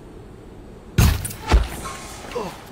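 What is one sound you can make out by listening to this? A bowstring twangs as an arrow is shot.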